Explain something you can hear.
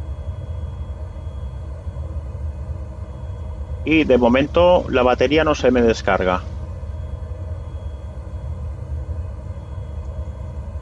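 An aircraft engine hums low and steady.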